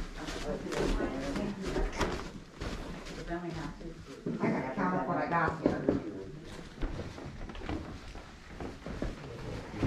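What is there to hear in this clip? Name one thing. Several adults talk quietly in the background.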